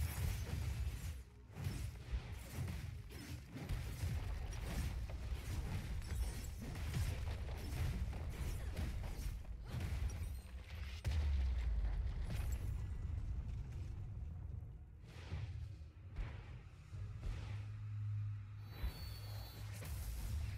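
Game battle effects clash, zap and thump in quick bursts.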